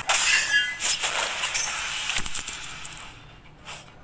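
Magic blasts and sword hits crackle and whoosh in a fast battle.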